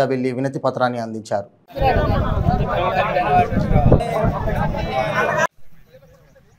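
A crowd of men chants slogans loudly outdoors.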